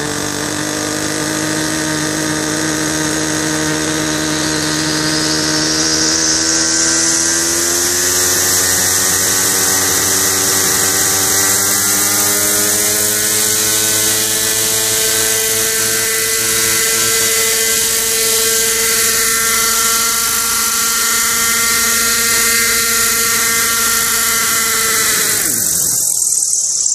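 A small engine runs loudly nearby, its pitch slowly rising, then winds down and stops.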